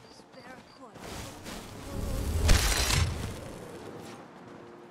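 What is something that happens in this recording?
A magic spell crackles and bursts with a loud whoosh.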